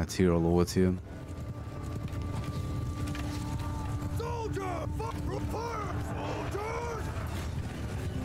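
Horses gallop over the ground.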